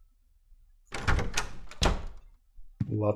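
A wooden door clicks and swings open.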